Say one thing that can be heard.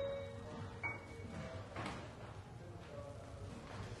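An electric keyboard plays notes.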